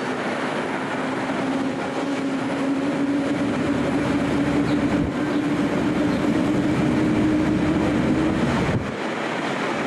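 A train's motor hums with a rising whine.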